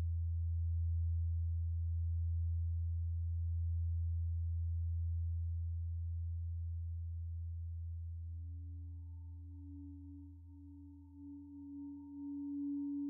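A low synthesizer drone hums and slowly fades away.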